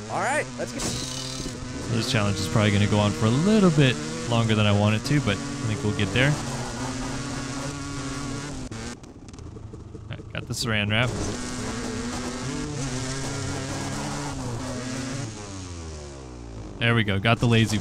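A dirt bike engine drones and revs.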